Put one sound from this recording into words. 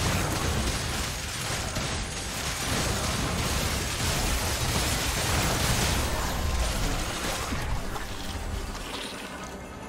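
Magic blasts whoosh and crackle in a busy fight.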